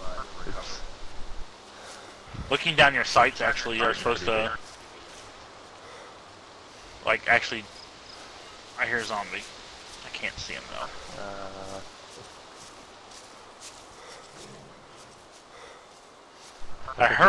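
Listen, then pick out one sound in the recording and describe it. Footsteps run over grass at a steady pace.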